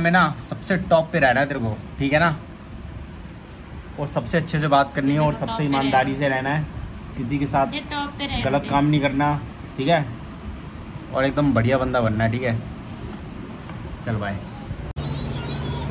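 A man talks playfully and close by to a baby.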